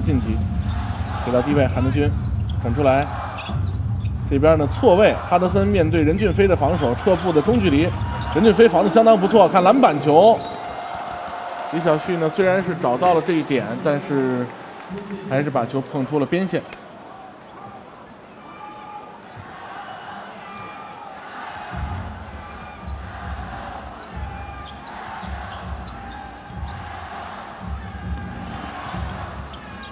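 A crowd murmurs throughout a large echoing arena.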